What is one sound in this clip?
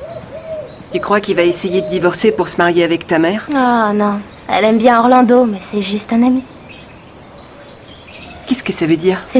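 A young boy speaks up sharply, close by.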